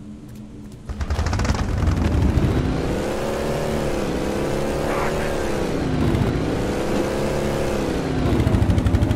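A vehicle engine hums and revs up and down.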